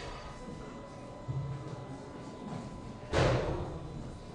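Footsteps thud on a wooden platform in a large echoing hall.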